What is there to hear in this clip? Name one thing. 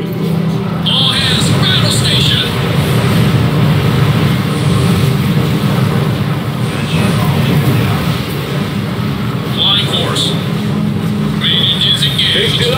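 Cannons fire in bursts.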